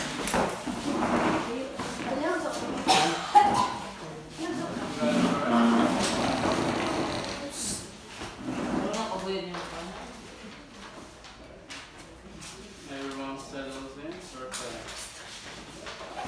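Paper sheets rustle as they are handed out.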